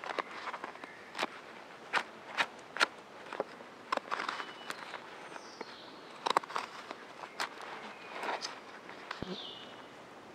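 A hook knife scrapes and gouges into linden wood.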